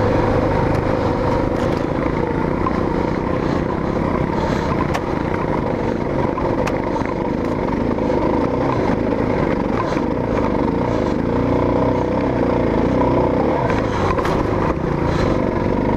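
Tyres crunch and rattle over rocky dirt.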